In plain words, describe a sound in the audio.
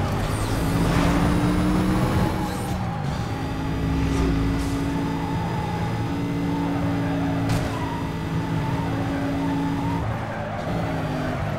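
Tyres whoosh over the road.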